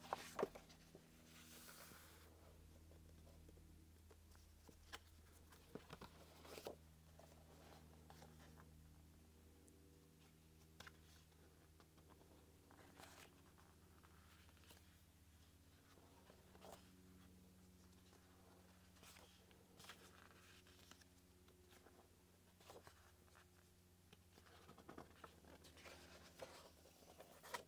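Glossy paper pages rustle and flap as they are turned by hand.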